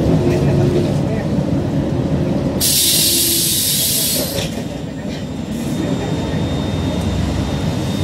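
A vehicle engine rumbles steadily close by.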